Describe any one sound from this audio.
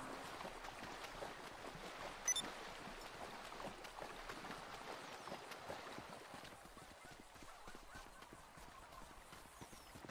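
Footsteps run on a dirt path.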